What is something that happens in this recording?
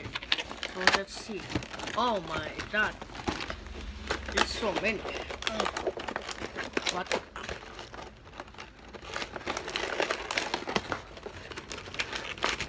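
A cardboard box rustles and taps as hands turn it over.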